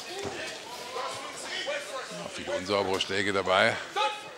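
Gloved punches land with dull thuds.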